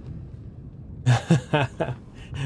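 A man laughs loudly close to a microphone.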